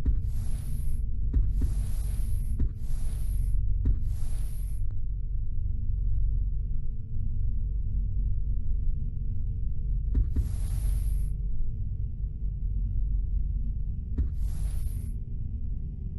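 A game menu makes short swooshing sounds as the selection changes.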